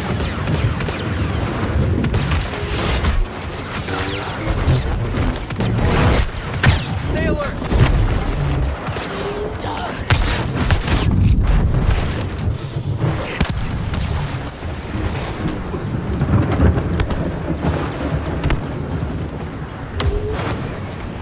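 Lightsabers hum and clash with sharp buzzing strikes.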